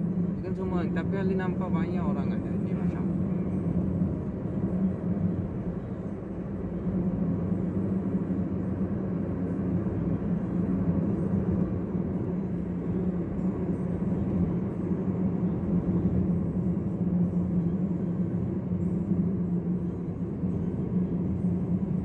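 Tyres roll on a road with a steady rumble.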